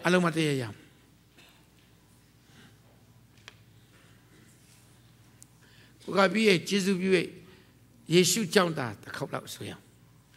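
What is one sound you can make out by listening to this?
A man preaches loudly and with emphasis into a microphone in a large hall, with long pauses.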